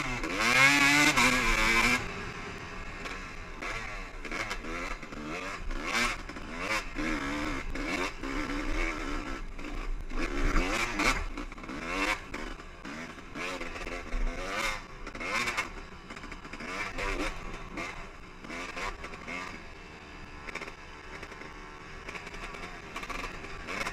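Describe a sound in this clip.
Tyres crunch and skid over loose gravel and rocks.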